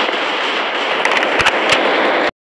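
A rifle is reloaded with sharp metallic clicks.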